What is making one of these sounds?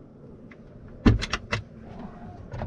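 A cabinet door shuts with a sharp knock.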